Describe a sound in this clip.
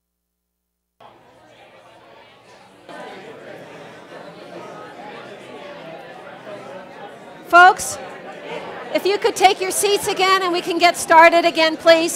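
A room full of people chatters in a low murmur.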